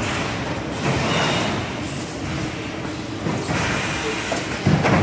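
A large machine hums and rumbles steadily.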